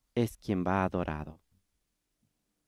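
A man's voice sings a short phrase through a microphone in a large echoing hall.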